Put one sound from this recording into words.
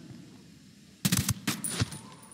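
A suppressed rifle fires a single muffled shot.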